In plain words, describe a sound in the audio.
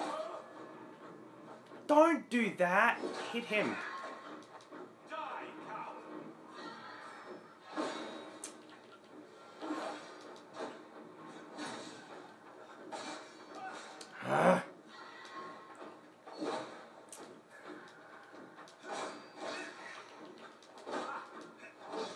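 Game sword fighting with clashing blows plays from a television.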